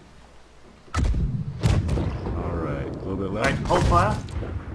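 Cannons fire with heavy booming blasts.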